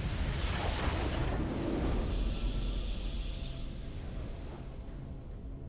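A triumphant victory fanfare from a video game swells and then fades away.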